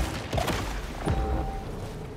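Debris crashes and scatters with a loud burst.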